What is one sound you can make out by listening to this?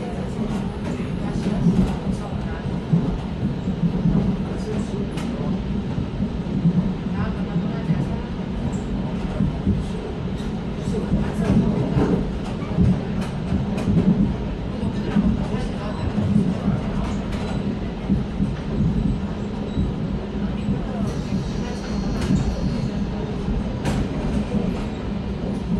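An electric commuter train rumbles along the tracks, heard from inside the carriage.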